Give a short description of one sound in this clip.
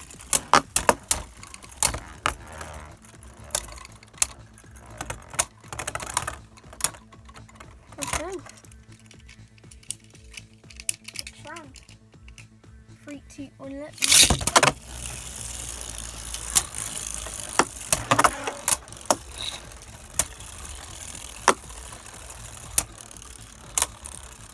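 Spinning tops clash together with sharp, rapid clicks.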